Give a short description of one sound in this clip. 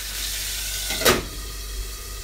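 A glass lid clinks onto a metal pan.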